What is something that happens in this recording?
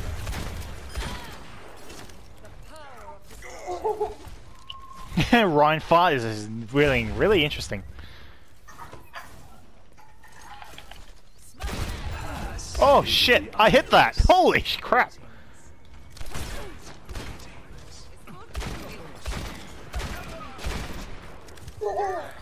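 Gunshots crack in quick bursts amid video game battle noise.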